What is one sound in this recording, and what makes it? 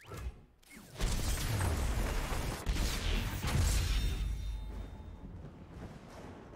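A deep magical whoosh swells loudly and fades.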